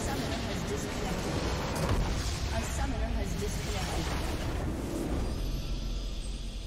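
A building explodes with a deep rumble.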